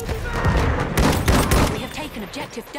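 Gunshots crack loudly nearby.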